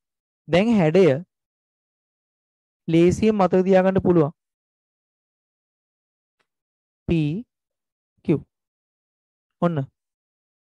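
A man speaks calmly into a headset microphone, in short phrases with pauses.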